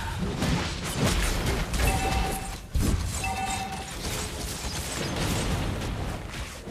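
Mobile battle game sound effects clash and burst.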